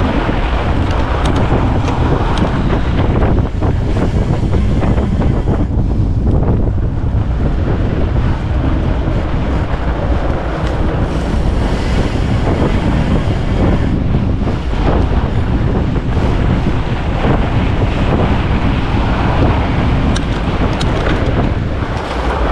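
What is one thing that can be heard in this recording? Wind rushes loudly past the microphone.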